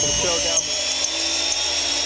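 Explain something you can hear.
A metal milling cutter grinds into steel.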